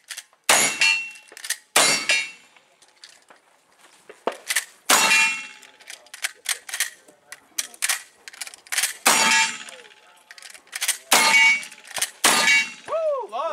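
A lever action rifle clacks as it is worked between shots.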